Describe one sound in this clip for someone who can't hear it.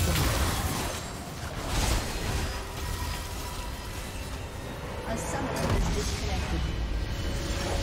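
Game spell effects burst and crackle in a fight.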